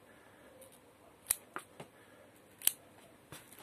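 Scissors snip through plant stems with sharp clicks.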